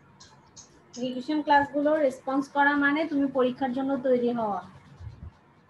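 A woman speaks in a drawn-out, sing-song voice over an online call.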